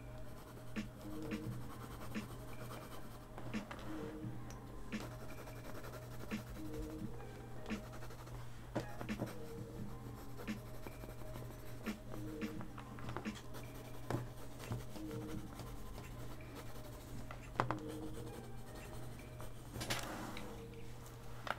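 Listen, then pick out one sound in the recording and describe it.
A felt-tip pen scratches softly on paper.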